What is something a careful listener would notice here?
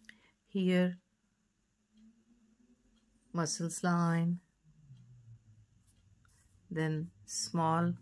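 A felt pen scratches softly on paper.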